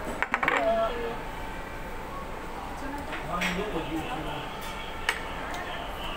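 Cutlery clinks against a plate.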